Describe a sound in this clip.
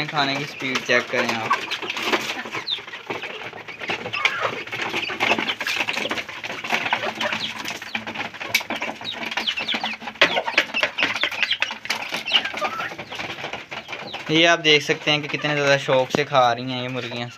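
Chickens cluck and chirp busily close by.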